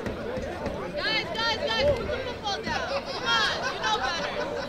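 Several voices cheer and call out loudly.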